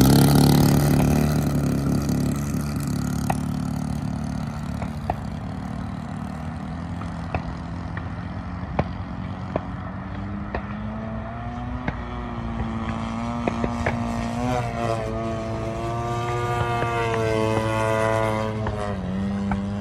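A model airplane's engine buzzes loudly on takeoff, then drones higher and lower as it flies overhead.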